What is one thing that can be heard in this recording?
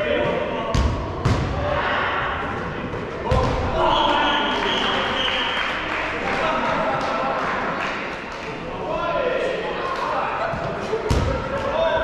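A ball thuds on the floor and against bodies.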